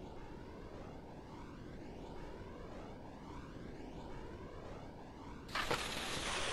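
Wind rushes steadily past a ski jumper in flight.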